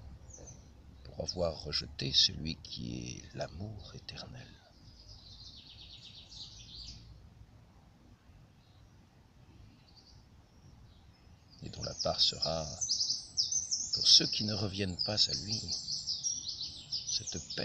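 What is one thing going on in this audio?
An elderly man speaks calmly close by, pausing in between.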